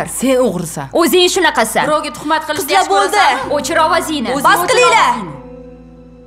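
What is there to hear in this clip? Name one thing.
A young woman shouts angrily, close by.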